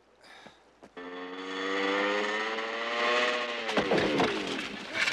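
A motorcycle engine revs loudly as it climbs.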